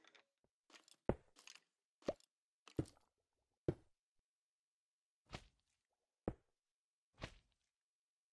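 Stone blocks thud as they are placed one after another.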